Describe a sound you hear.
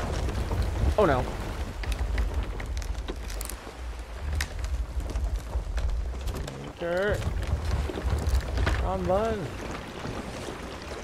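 Wind rumbles low and steady.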